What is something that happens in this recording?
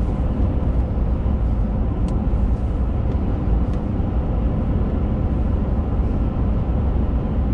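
A car's engine hums steadily as it drives.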